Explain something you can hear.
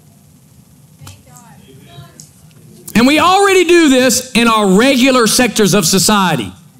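A middle-aged man speaks loudly and with animation through a microphone in a large hall.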